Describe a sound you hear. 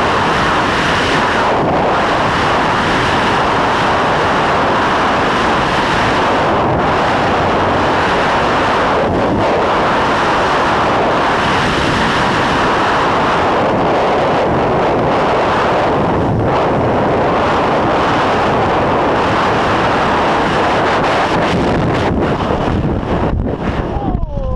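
Strong wind roars loudly and steadily.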